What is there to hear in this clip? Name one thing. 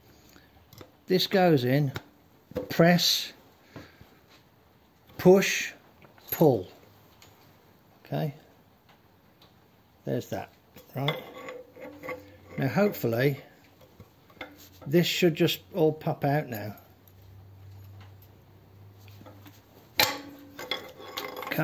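A metal wrench clicks and scrapes against engine parts.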